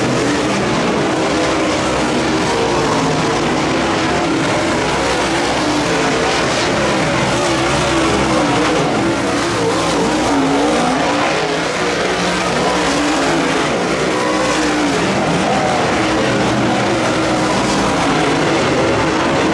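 Loud race car engines roar and rev steadily as cars circle outdoors.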